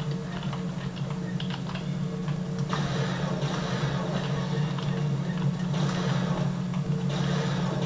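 Keys clatter on a keyboard.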